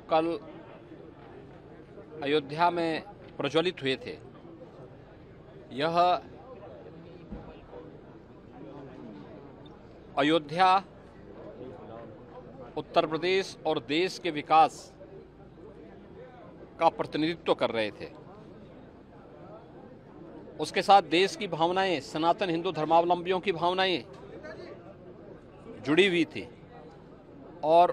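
A middle-aged man speaks calmly into microphones close by, in short bursts with pauses.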